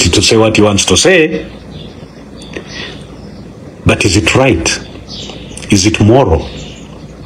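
A man speaks forcefully and with animation close to a microphone, in short bursts with pauses.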